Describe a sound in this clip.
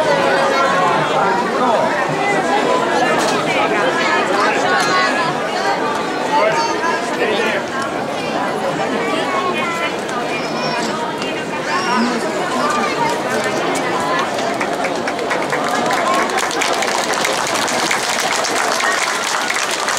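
A large crowd of men and women chatters loudly all around, close by.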